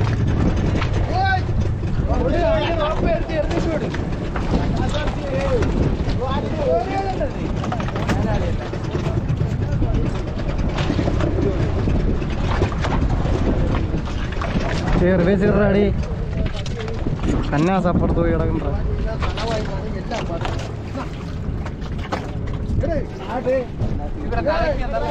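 Men talk and call out to each other nearby.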